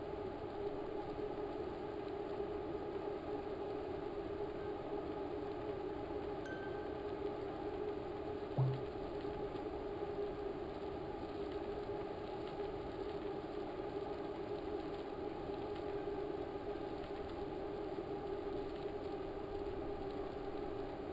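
A steady whirring hum of a bike trainer spinning runs throughout.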